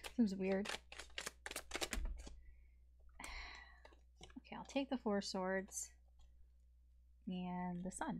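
Playing cards shuffle and slap softly together.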